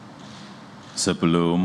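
A man reads out through a microphone.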